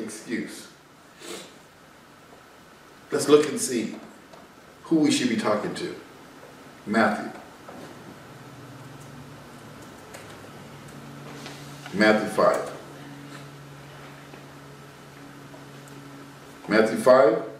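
A man speaks calmly and close by, pausing between phrases.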